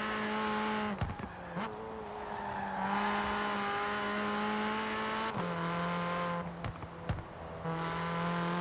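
A car engine drops in pitch briefly as gears shift.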